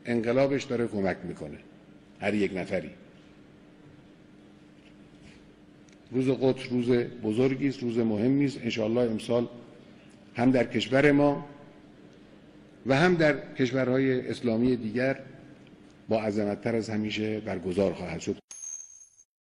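An elderly man speaks firmly into microphones.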